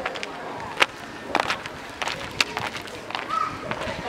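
Footsteps in slippers crunch on gravel.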